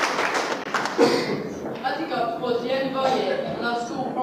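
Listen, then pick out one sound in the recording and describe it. A young man speaks into a microphone through loudspeakers in an echoing hall.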